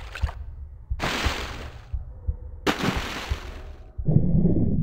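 Water splashes loudly as a swimmer dives in.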